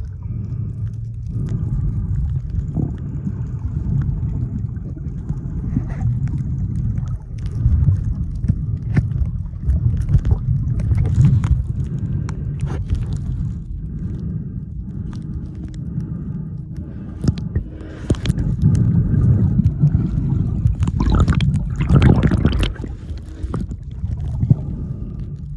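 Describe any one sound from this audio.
Swimmers' kicks splash and churn the water.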